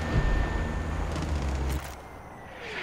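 A heavy weapon fires with a deep, loud boom.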